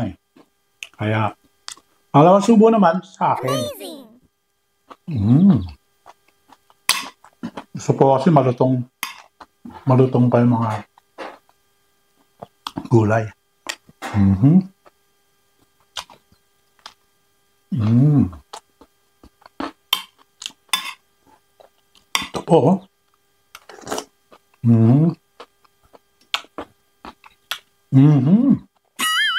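A middle-aged man makes loud eating and slurping noises close up.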